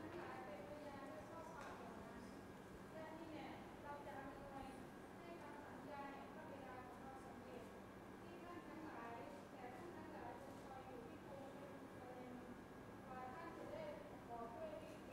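A middle-aged man speaks steadily into a microphone, heard through loudspeakers in an echoing hall.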